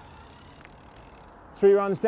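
A bicycle's tyres whir softly along the road.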